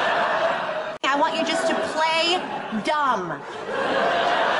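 A young woman speaks with animation close by.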